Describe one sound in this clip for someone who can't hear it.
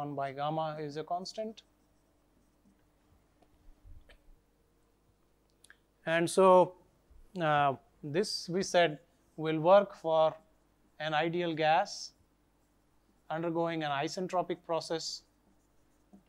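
A man speaks calmly and clearly into a close microphone, pausing between phrases.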